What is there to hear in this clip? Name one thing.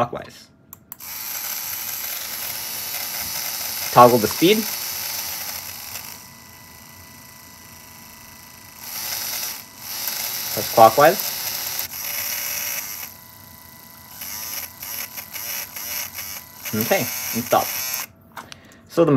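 A small electric motor whirs in short bursts.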